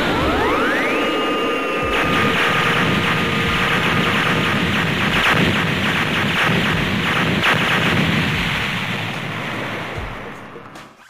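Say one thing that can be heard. A crackling energy aura roars steadily.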